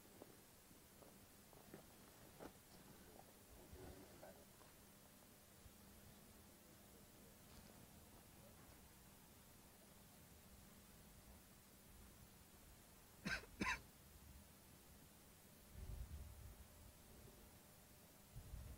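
Men murmur quietly nearby outdoors.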